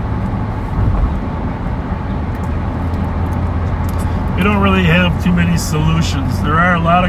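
A car drives along a road with a steady low rumble of tyres and engine.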